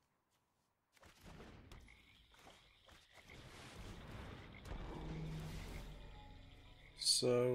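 Computer game sound effects whoosh and chime as cards move.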